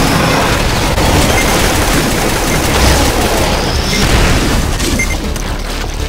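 A plasma gun fires in quick electronic zaps.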